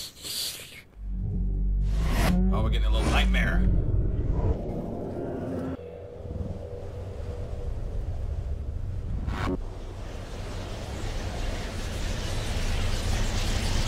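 Loud rumbling and whooshing game noise swells up.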